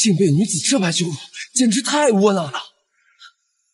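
A man speaks in a strained, tearful voice close by.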